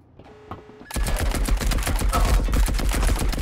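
A rifle fires a fast burst of loud gunshots.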